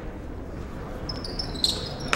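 Sneakers squeak on a wooden floor as players jostle.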